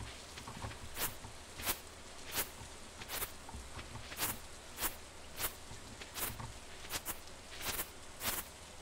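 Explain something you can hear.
Footsteps tap steadily through grass.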